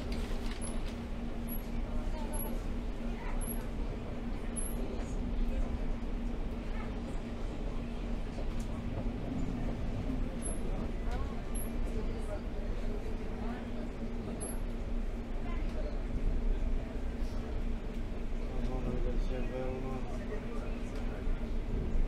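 The inside of a train car hums with a steady drone.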